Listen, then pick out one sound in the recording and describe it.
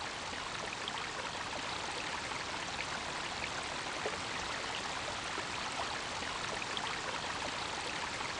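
Water pours steadily from a pipe and splashes into a channel.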